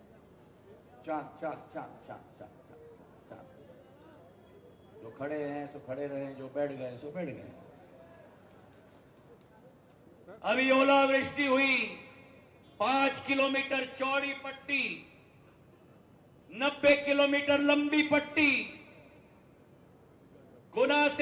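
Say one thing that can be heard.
A man speaks forcefully into a microphone through loudspeakers outdoors, in short bursts with pauses.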